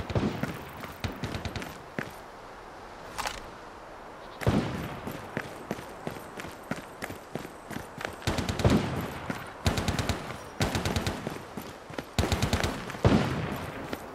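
Footsteps crunch quickly over grass and gravel.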